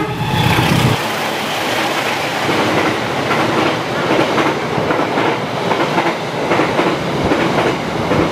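Train wheels clatter rhythmically over rail joints as carriages rush past.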